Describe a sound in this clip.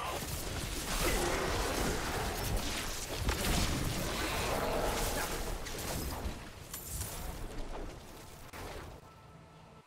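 Spells crackle and blast in a fight.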